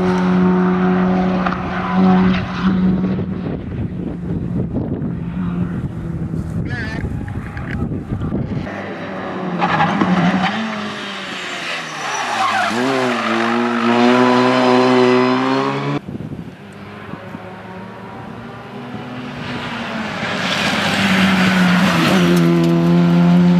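A four-cylinder rally car races past at full throttle, its revs rising and falling through the gears.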